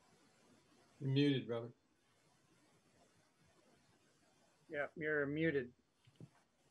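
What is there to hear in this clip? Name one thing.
A middle-aged man speaks calmly in short bursts over an online call.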